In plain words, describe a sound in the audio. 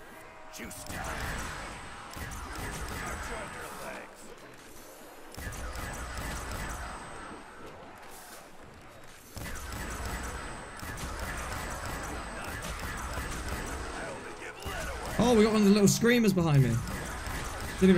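A ray gun fires repeated zapping blasts.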